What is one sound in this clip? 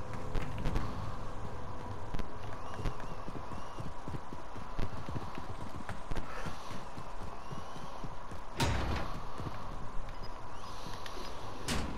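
Footsteps thud quickly across a hard floor.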